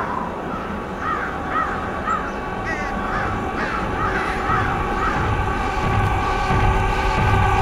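Many creatures run across an open field with a low, rumbling tramp of footsteps.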